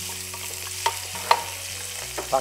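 A wooden spatula scrapes and stirs food in a metal pot.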